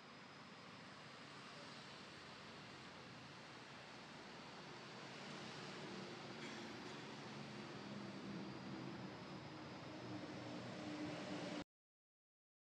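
A young man sobs quietly up close.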